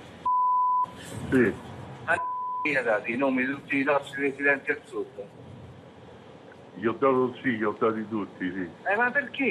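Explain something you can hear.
A man speaks casually, heard through a muffled phone line.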